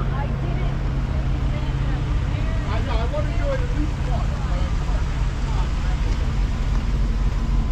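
A vehicle engine idles nearby with a low, steady rumble.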